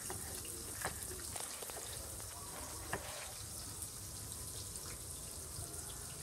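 A knife cuts through tomatoes and taps on a wooden board.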